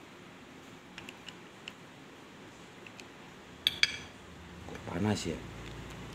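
Small metal parts click and scrape as they are screwed apart.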